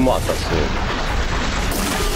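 Fire roars and crackles after an explosion.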